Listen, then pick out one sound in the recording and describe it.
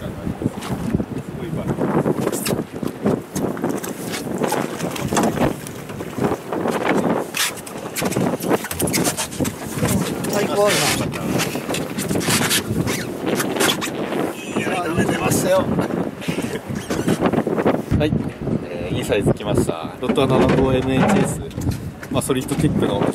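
Wind blows across open water.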